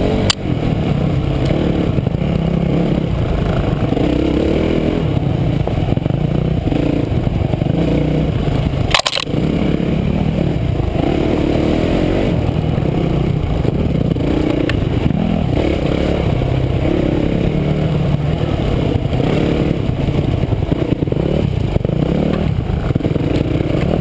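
A dirt bike engine roars loudly up close, revving up and down.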